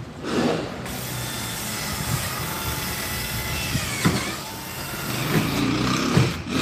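A power drill whirs steadily close by.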